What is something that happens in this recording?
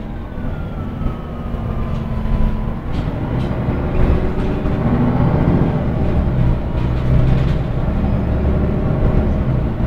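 Loose fittings rattle as the bus moves.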